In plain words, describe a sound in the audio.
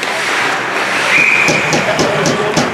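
A whistle blows sharply in a large echoing rink.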